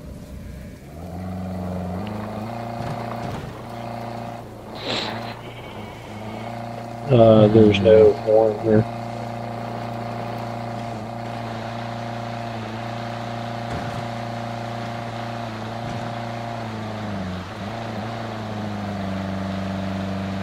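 A car engine hums steadily as the car drives along a rough track.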